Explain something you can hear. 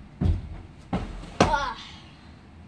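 Heavy thumps sound as a child lands on a cushion.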